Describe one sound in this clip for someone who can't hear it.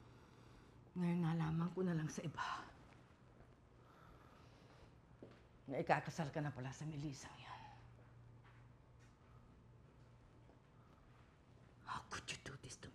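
An older woman speaks firmly and close by.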